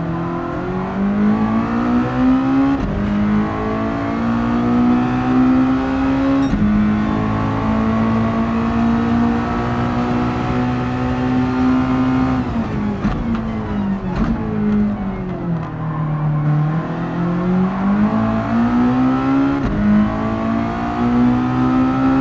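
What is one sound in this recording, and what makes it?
A racing car engine roars, climbing in pitch through each gear and dropping sharply at every shift.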